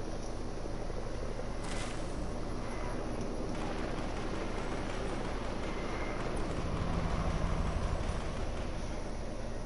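Leaves rustle as someone pushes through a bush.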